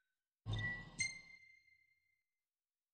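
A bright electronic menu chime rings twice.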